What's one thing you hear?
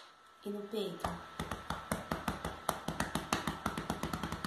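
A young woman pats her chest in a fast rhythm.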